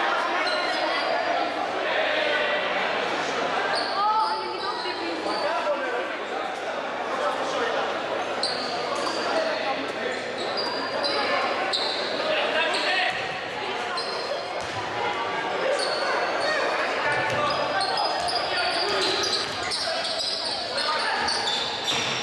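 Spectators murmur in an echoing gym.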